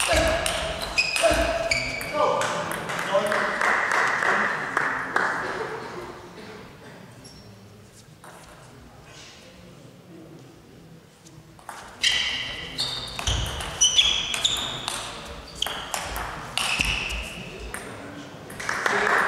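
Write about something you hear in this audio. Sports shoes squeak on the hall floor.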